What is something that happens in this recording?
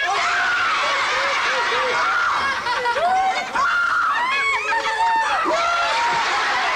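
Several men and women shout and laugh with animation.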